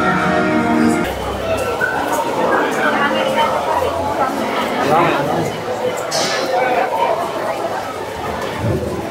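A large outdoor crowd chatters and cheers loudly.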